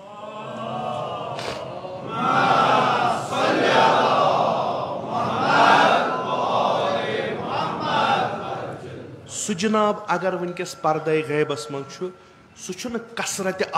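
A middle-aged man preaches passionately into a microphone in an echoing room.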